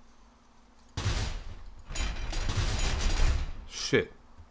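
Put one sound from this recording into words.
A chain-link gate rattles and clanks as a hand shakes it.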